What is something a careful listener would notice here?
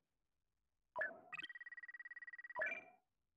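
A game menu gives a short chime as it switches.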